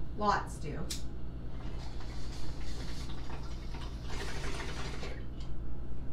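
Water bubbles in a pipe.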